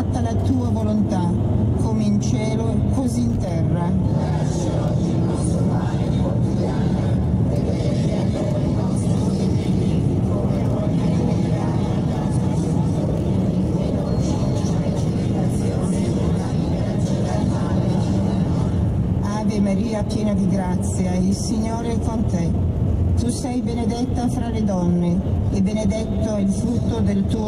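A car engine hums steadily from inside a moving car.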